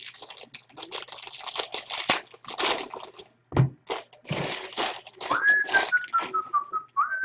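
Foil wrappers crinkle and tear close by.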